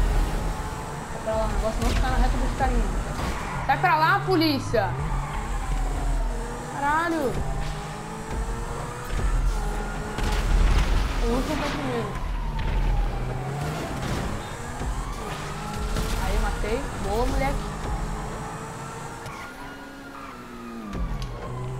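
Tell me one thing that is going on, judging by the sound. A race car engine roars and revs up and down.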